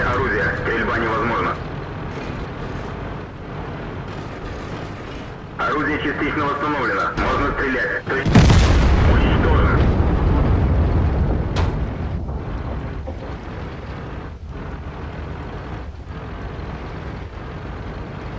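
A tank engine rumbles low and steadily.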